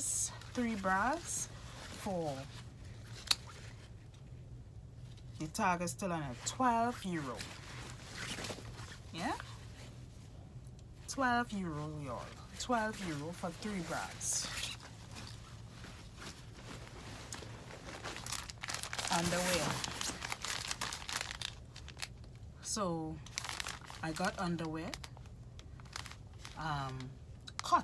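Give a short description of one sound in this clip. Fabric and plastic packaging rustle in hands.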